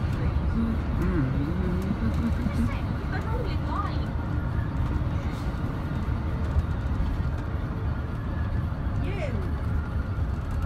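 A bus engine rumbles steadily while driving along a road.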